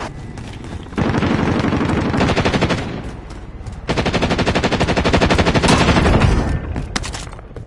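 Rapid automatic gunfire rattles in long bursts.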